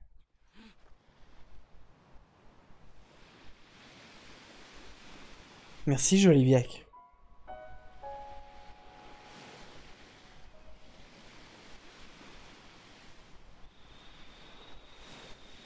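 Gentle waves wash onto a beach.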